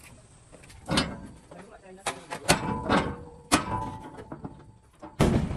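A man pulls metal door latches that clank sharply.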